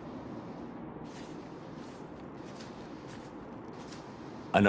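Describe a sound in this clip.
Booted footsteps walk slowly on stone.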